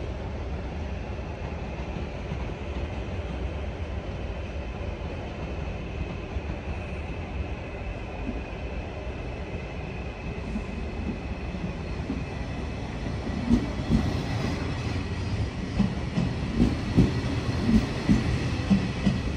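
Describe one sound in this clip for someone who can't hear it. Brakes squeal with a high, steady whine as a train slows.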